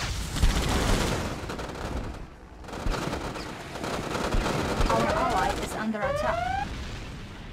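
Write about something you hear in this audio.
Tank engines rumble low and steady.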